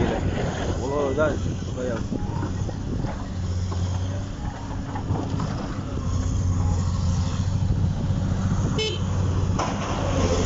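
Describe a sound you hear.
An excavator engine drones nearby.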